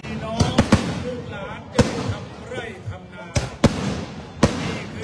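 Sharp blasts crack out several times nearby.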